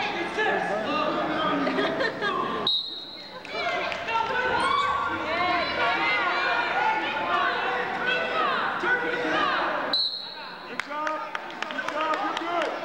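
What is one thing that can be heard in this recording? A crowd of spectators shouts and cheers in a large echoing gym.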